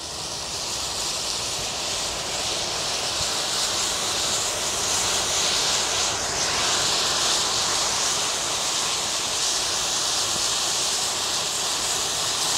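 Fire crackles as it burns.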